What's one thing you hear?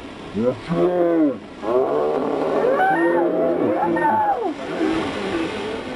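A young woman shrieks.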